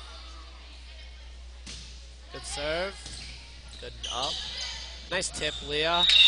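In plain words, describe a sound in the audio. A volleyball is hit with a slap.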